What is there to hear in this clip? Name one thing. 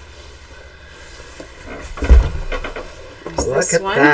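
Fabric rustles and flaps as it is unfolded.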